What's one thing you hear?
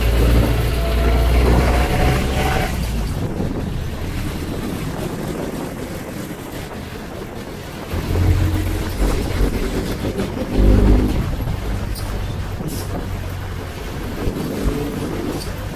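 A vehicle's engine rumbles steadily while driving along a street.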